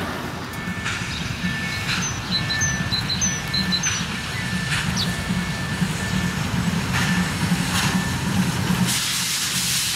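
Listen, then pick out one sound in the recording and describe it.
A steam locomotive chugs and puffs as it approaches.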